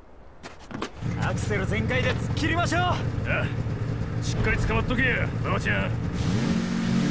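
A snowmobile engine starts and idles with a low rumble.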